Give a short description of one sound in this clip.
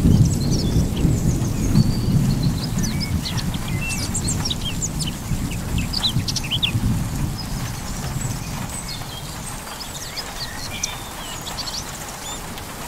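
Thunder rumbles low in the distance and slowly fades.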